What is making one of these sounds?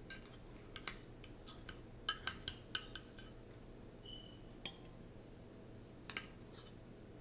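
A metal spoon clinks and scrapes against a ceramic bowl and plate.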